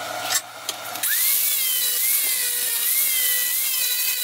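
An angle grinder whines loudly as it sands wood.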